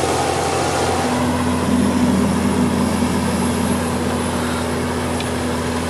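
A cultivator scrapes and rattles through the soil.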